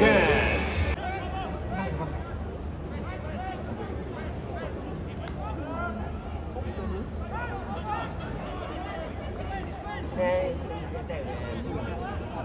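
A large crowd murmurs and chatters close by.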